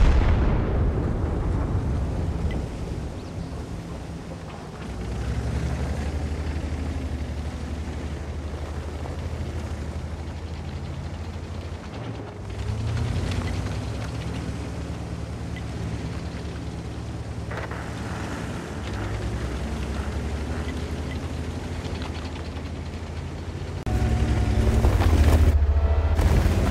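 A tank engine rumbles low and steady, rising and falling in strength.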